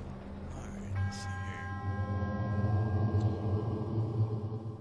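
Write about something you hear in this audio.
Soft chiming tones ring out and hold.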